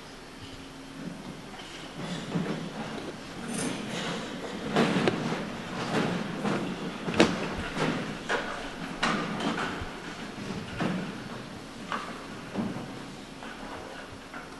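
A concert band plays music in a large echoing hall.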